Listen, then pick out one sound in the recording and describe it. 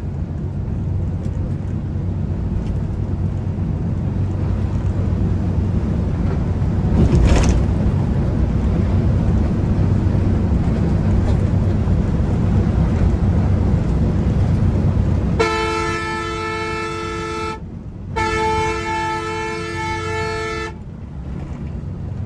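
A heavy bus engine rumbles steadily while driving along a road.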